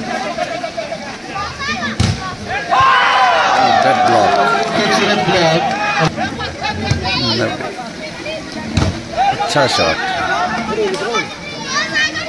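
A crowd of young men shouts and cheers outdoors.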